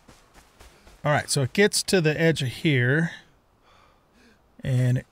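An older man speaks with animation into a close microphone.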